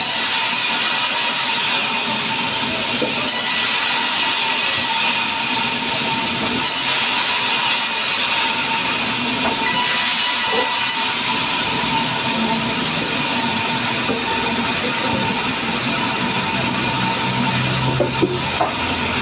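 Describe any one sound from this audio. A band saw whines steadily as it cuts through wood.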